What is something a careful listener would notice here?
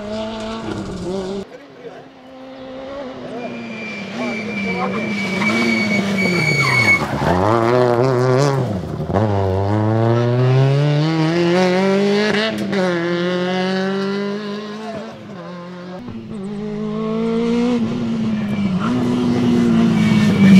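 A rally car engine roars at high revs, rising and falling through the gears.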